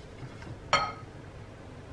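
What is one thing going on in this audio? A wire whisk clinks against a bowl.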